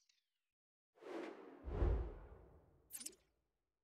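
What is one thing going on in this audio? A soft whoosh swells and fades as a menu changes.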